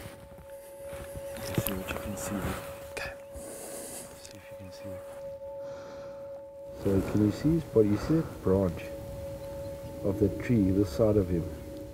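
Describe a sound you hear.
A man speaks quietly close by.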